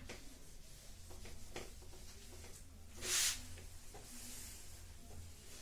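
An eraser rubs across a whiteboard.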